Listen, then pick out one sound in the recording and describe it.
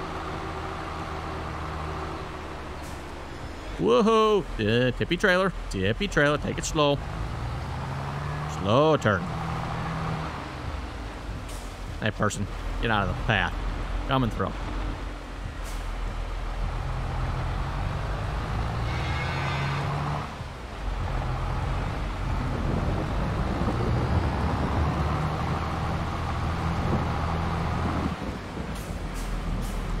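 A tractor engine rumbles steadily, rising and falling as it drives.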